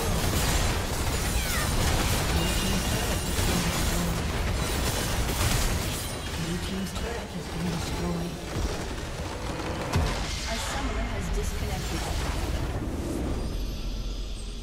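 Game battle effects clash and explode loudly.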